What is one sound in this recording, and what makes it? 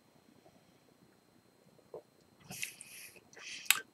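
An older man sips a drink.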